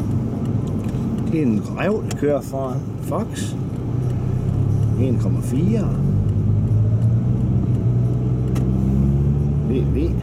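A car engine hums steadily and rises in pitch as the car speeds up.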